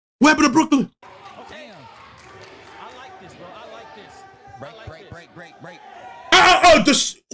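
A crowd talks and cheers in the background.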